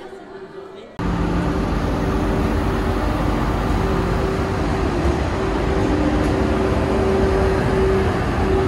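A stationary train hums loudly.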